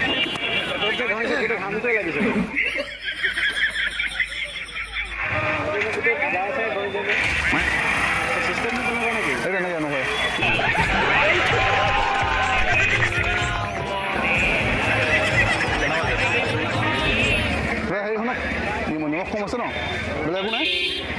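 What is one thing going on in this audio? Several men talk loudly with one another outdoors.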